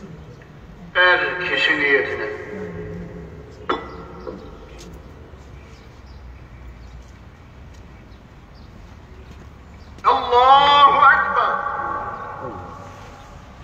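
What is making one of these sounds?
A man chants a prayer in short bursts.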